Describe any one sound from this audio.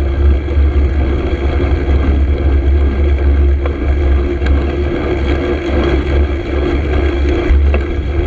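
Wind rumbles loudly and steadily across a microphone outdoors.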